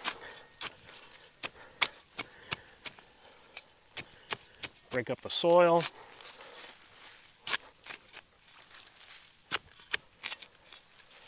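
A small shovel scrapes and chops into soil again and again.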